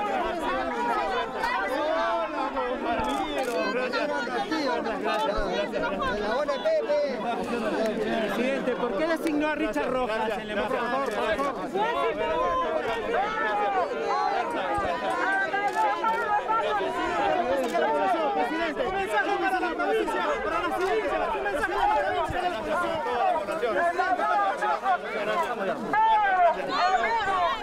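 A crowd of men and women talks and calls out excitedly close by, outdoors.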